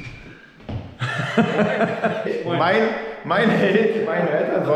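A middle-aged man greets cheerfully nearby.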